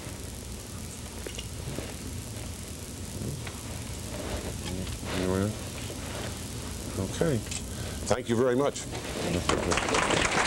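An elderly man speaks through a microphone.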